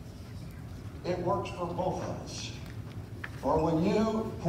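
An elderly man speaks with animation through loudspeakers in an echoing hall.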